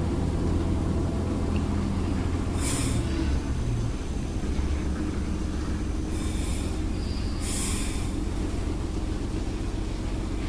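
A steam engine rumbles steadily close by.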